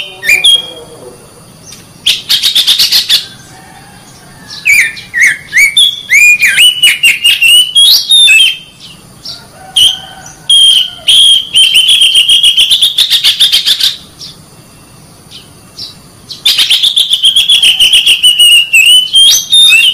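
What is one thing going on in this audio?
A songbird sings loud, varied whistling phrases close by.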